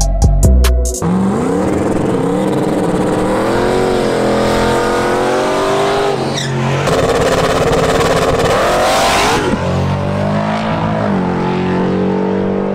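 A car engine revs hard and roars loudly.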